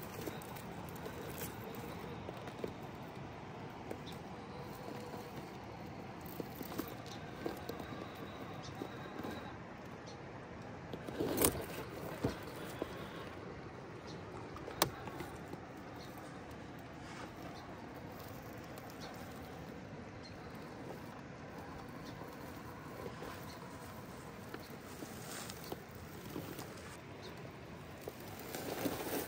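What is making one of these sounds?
Plastic tyres scrape and knock on rock.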